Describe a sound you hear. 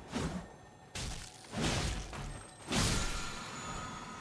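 A heavy blow strikes with a loud crash.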